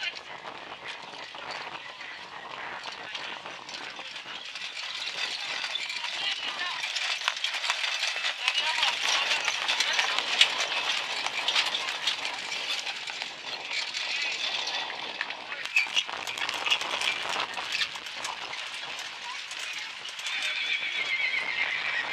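Horse hooves trot on packed dirt.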